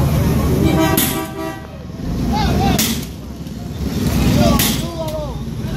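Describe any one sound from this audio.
A sledgehammer bangs loudly against a metal shutter.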